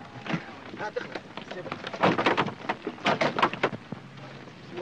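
A man speaks quickly and with animation nearby.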